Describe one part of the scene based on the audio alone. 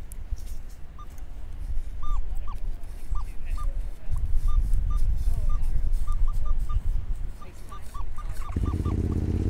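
A metal detector gives short, rising beeps.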